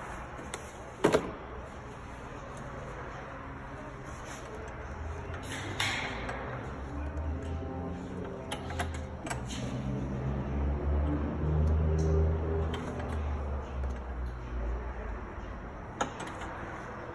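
Metal tools clank and click against engine parts close by.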